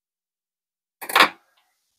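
Metal pliers clatter down onto a metal table.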